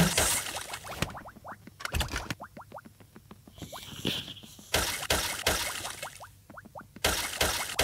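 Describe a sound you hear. Quick rising game chimes ring out one after another as stars are collected.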